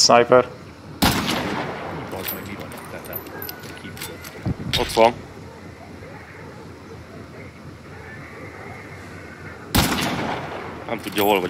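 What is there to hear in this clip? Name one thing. A rifle shot cracks loudly and echoes away.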